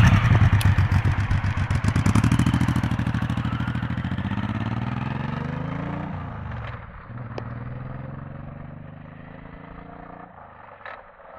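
A motorcycle engine roars loudly up close, then fades as the motorcycle rides away.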